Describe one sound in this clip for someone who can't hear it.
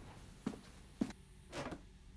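A plastic box knocks as it is set down on a floor.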